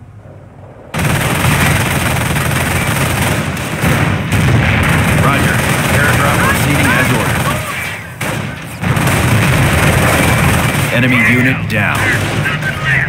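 Rifles and machine guns fire in a noisy battle.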